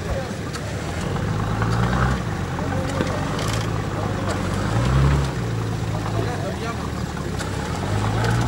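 An off-road vehicle's engine revs hard and strains.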